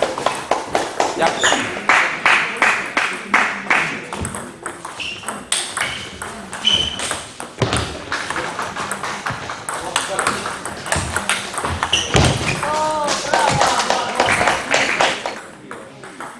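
A table tennis ball clicks back and forth off paddles and the table in a quick rally.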